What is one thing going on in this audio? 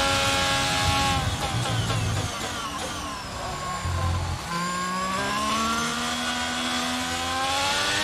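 A racing car engine whines high, dropping in pitch as the car brakes and rising again as it speeds up.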